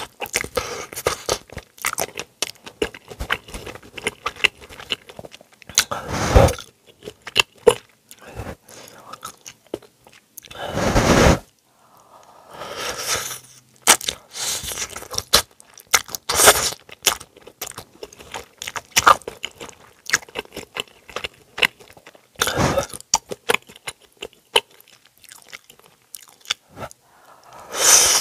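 A person chews and smacks wet food close to a microphone.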